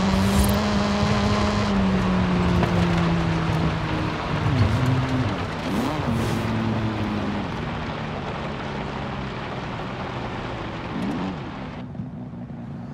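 A car engine hums and slowly winds down as the car slows.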